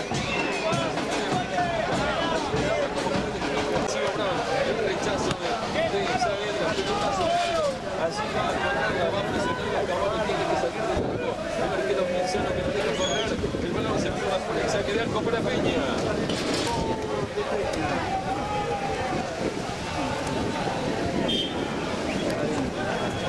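A crowd of men and women chatters and shouts nearby, outdoors.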